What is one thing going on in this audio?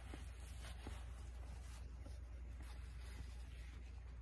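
A plastic wrapper crinkles between fingers.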